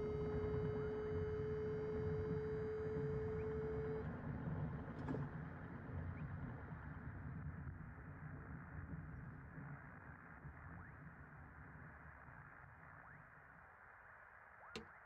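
A glider's wheel rumbles over bumpy grass and slowly fades.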